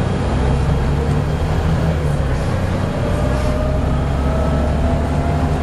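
A bus engine rumbles steadily from inside the bus as it drives along.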